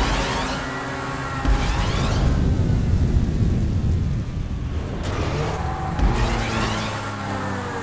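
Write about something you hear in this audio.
Tyres rumble over a ridged track.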